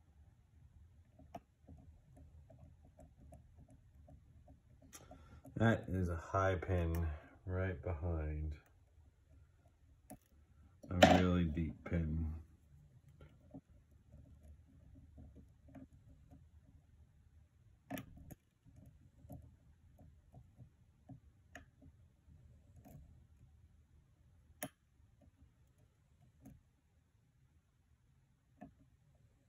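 Small metal picks click and scrape softly inside a lock.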